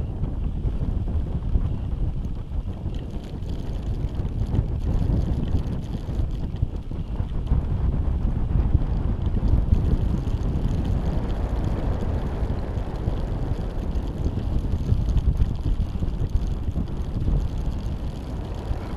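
Wind rushes and buffets loudly against the microphone.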